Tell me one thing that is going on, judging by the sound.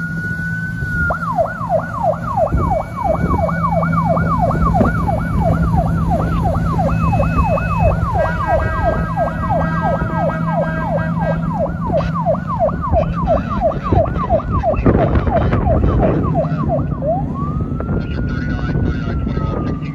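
A boat's siren yelps rapidly, then wails slowly.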